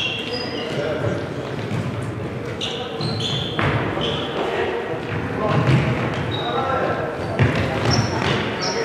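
A ball thumps against the floor and is kicked.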